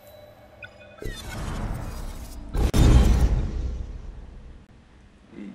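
A game menu makes a sweeping whoosh as a choice is confirmed.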